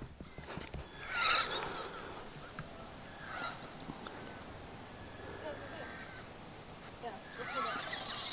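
A small electric toy car whirs as it drives over dirt.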